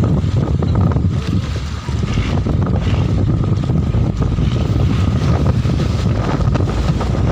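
Strong wind blusters across the open water.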